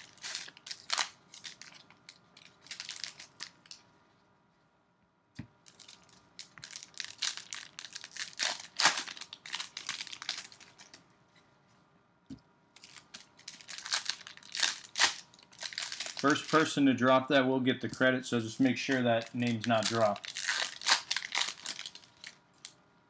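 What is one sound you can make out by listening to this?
Foil wrappers crinkle and rustle as they are torn open by hand.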